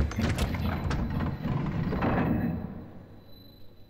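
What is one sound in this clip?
A heavy mechanism grinds and rumbles as a panel slides.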